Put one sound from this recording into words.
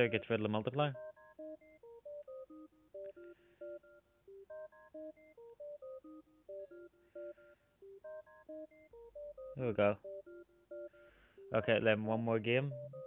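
Simple electronic game music plays a bouncy melody.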